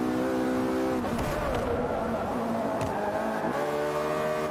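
A racing car engine drops to a rumbling lower pitch while braking into a corner.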